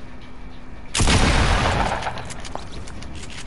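A gunshot blasts.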